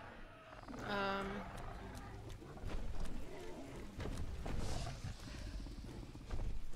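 Fires crackle and roar.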